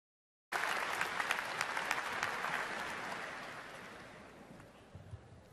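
A crowd applauds in a large hall, then the applause fades away.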